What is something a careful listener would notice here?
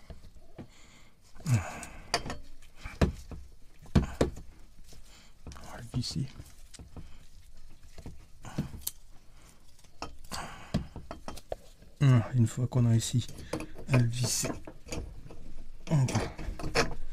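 Plastic parts knock and clatter as hands fit them together.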